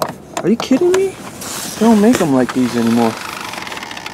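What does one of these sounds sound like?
A car door swings open.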